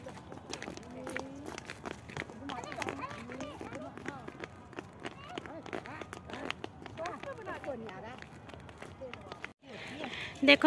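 A child's footsteps patter on pavement.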